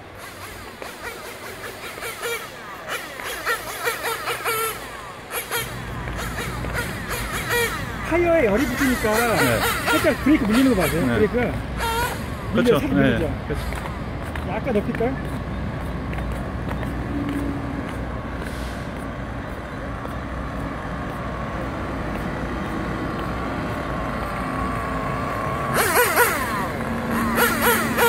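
A small electric motor of a toy car whines as the car drives along pavement.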